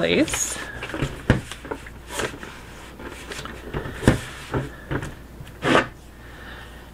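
Hands rub and press on a plastic bucket.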